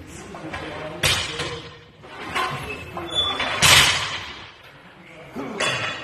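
A man grunts and strains loudly.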